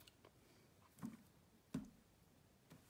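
A stiff paper card taps and slides on a wooden table.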